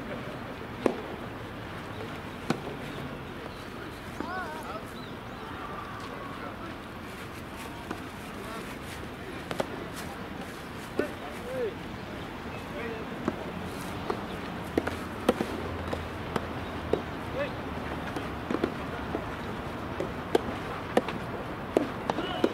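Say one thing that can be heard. Tennis balls pop sharply off rackets outdoors.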